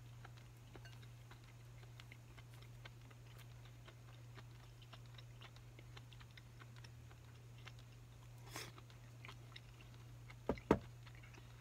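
Chopsticks click lightly against a bowl.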